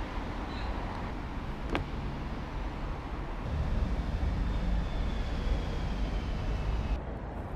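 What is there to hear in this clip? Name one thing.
City traffic hums faintly far below.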